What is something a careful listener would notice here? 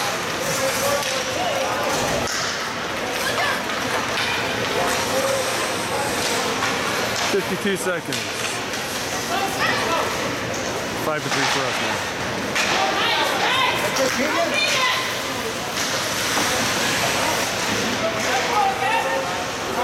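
A hockey puck clacks against sticks.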